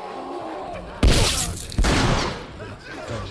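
A small bomb bursts with a loud bang.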